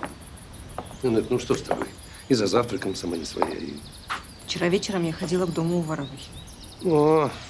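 A man speaks calmly and with concern, close by.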